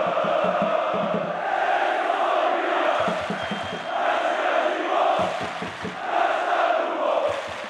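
A large stadium crowd chants loudly in unison, outdoors.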